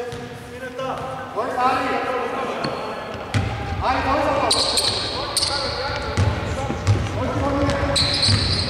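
Basketball shoes squeak sharply on a wooden court in a large echoing hall.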